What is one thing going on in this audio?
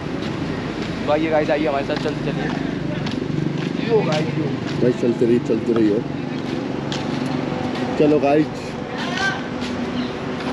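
Footsteps shuffle on pavement close by.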